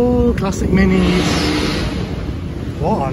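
Tyres hiss through water on a wet road as a car passes.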